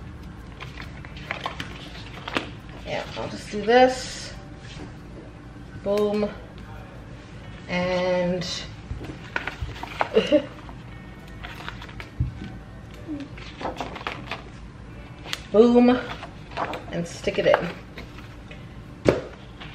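Paper rustles and crinkles as sheets are handled.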